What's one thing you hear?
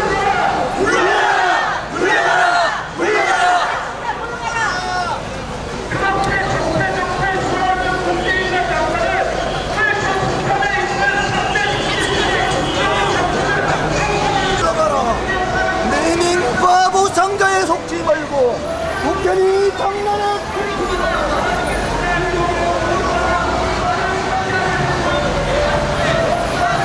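A crowd of marchers chants and sings loudly outdoors, amplified through loudspeakers.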